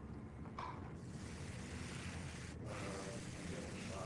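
An airbrush hisses steadily as it sprays.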